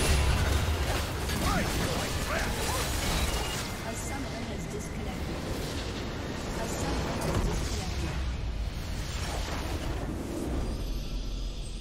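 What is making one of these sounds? Spells and attacks crash and burst loudly in a game battle.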